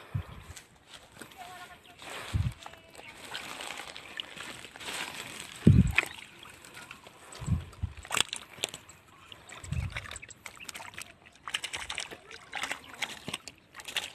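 Water splashes and sloshes around a net.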